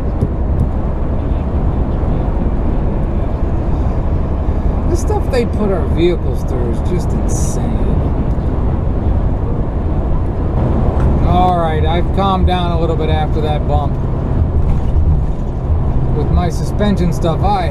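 A vehicle's engine hums and tyres roar steadily on a highway.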